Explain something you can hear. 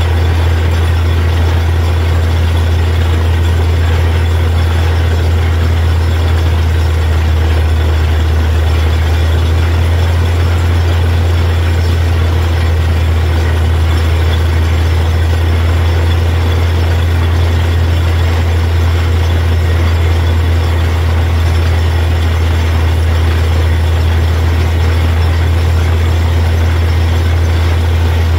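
Water and mud gush and splash out of a borehole.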